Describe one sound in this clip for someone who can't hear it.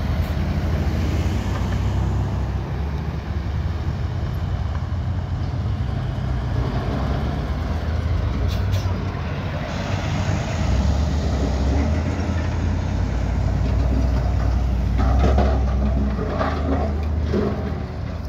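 Traffic rumbles steadily along a road outdoors.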